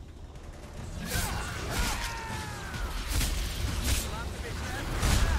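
Swords clash with metallic rings.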